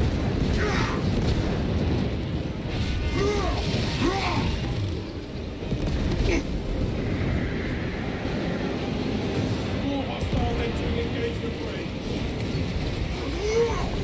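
Electricity crackles and sparks.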